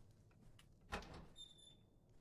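A door handle clicks as a door is opened.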